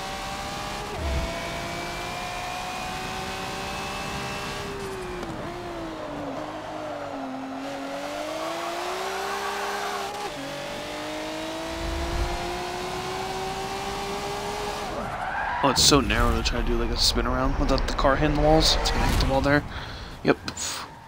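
A racing car engine roars, its pitch rising and dropping as it shifts gears.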